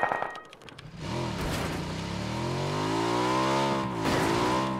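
A motorbike engine revs and drones.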